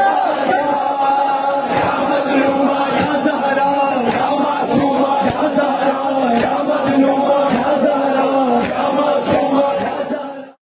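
Men beat their chests in a steady rhythm.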